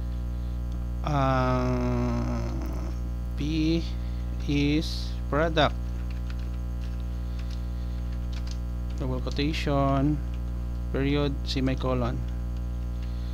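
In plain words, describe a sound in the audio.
A man speaks calmly and close to a microphone, in short phrases.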